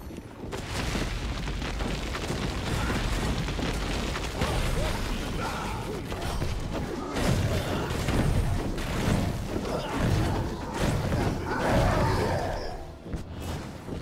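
Game combat sounds clash and burst loudly.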